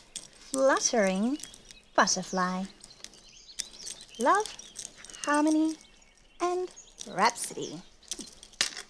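Two young women talk with animation in high, sing-song voices.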